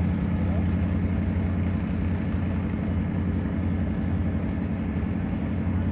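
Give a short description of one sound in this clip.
A tractor engine rumbles loudly and steadily nearby.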